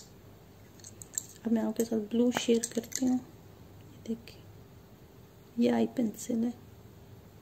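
Pencils click softly against each other in a hand.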